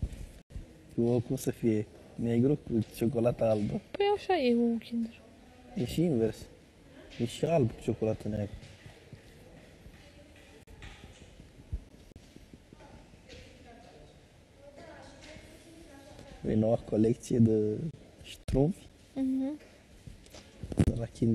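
A man talks casually up close.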